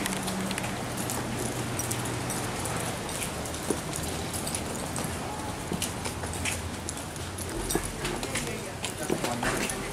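Footsteps tap on paving stones nearby.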